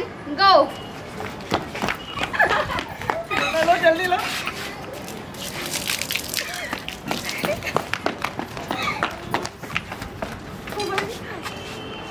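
Young women laugh and chatter excitedly.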